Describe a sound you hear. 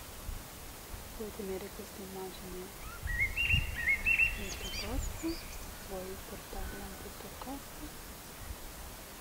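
A young woman speaks calmly and with animation close by.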